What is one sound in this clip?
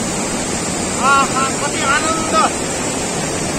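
A young man speaks with animation, close by.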